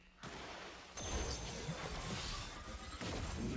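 A large energy blast bursts with a loud crackling rush.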